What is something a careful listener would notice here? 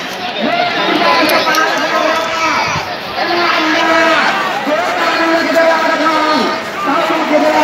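A large crowd outdoors shouts and chants loudly.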